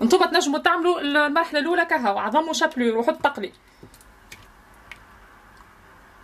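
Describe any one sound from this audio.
Food squishes softly as a hand dips it into beaten egg.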